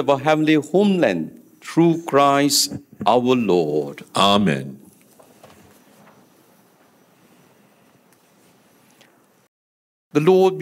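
An elderly man intones a prayer through a microphone.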